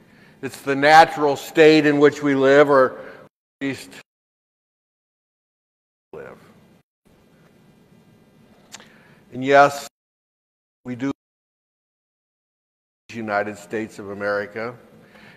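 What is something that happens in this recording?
A middle-aged man speaks with animation into a microphone in an echoing hall, pausing between phrases.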